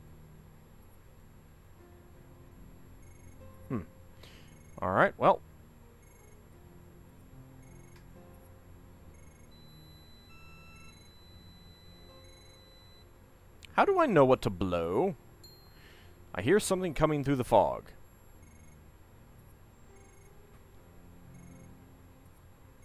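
Soft electronic game music plays quietly.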